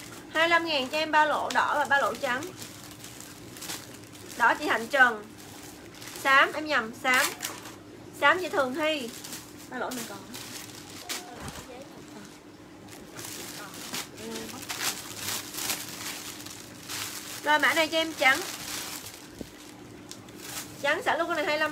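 Plastic packaging crinkles and rustles in a young woman's hands.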